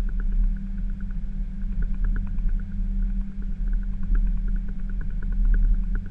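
An aircraft's engines roar steadily as it rolls down a runway.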